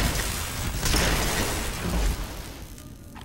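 An energy weapon fires with a loud crackling hiss.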